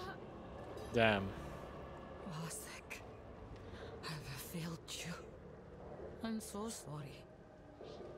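A young man speaks casually and close to a microphone.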